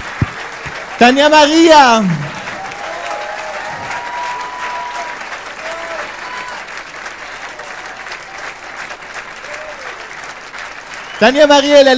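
A man's crowd-pleasing shout rings out loudly through a microphone.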